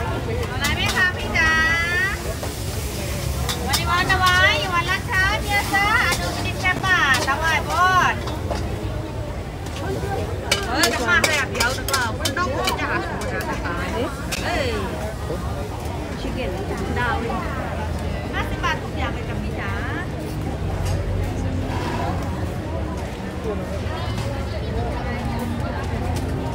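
A crowd murmurs and chatters all around outdoors.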